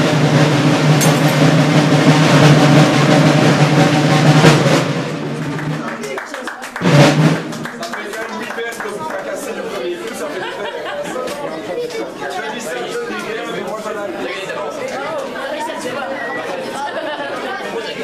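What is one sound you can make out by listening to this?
A crowd of children chatters and murmurs nearby.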